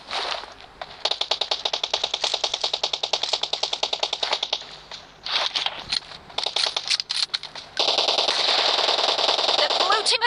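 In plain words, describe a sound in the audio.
Footsteps run quickly and evenly over the ground.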